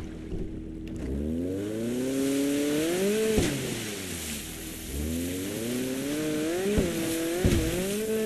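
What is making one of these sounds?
Water sprays and hisses behind a speeding jet ski.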